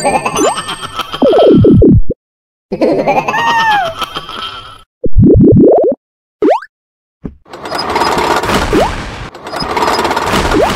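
A cartoonish jump sound effect boings upward.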